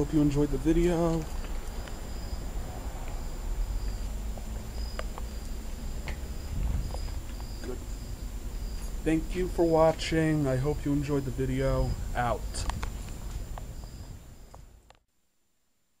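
An air conditioning unit hums and whirs steadily outdoors.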